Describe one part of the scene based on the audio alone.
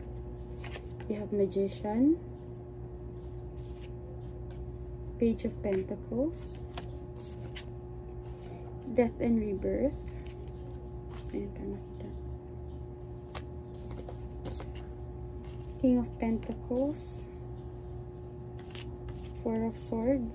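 Cards riffle and tap as a woman shuffles a deck.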